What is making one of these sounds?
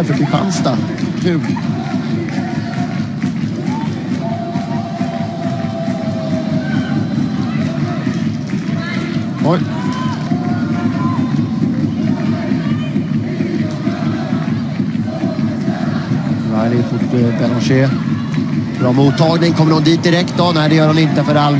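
A large crowd murmurs steadily outdoors.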